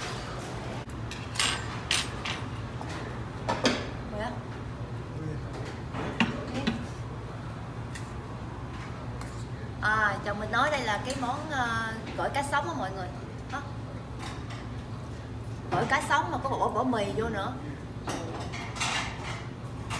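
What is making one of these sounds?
Utensils clink against dishes.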